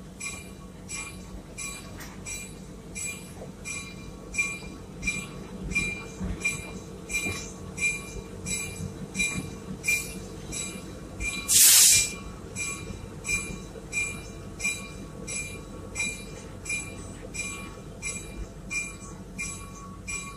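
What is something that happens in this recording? A train rumbles steadily as it rolls along.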